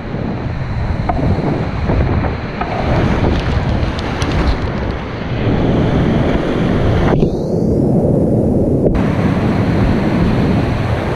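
Whitewater rapids roar loudly and steadily close by.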